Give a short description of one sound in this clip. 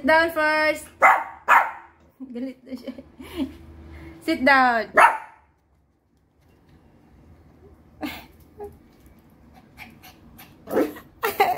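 A small dog barks sharply close by.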